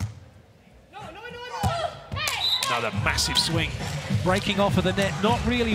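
A crowd cheers and whistles in a large hall.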